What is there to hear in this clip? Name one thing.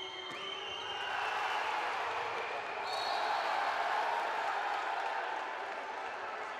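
A crowd roars loudly after a goal.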